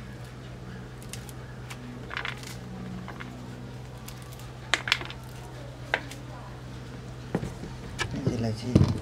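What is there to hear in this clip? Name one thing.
Corn kernels click and patter as they are rubbed off a cob into a metal pan.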